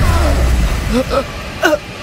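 A woman groans in pain.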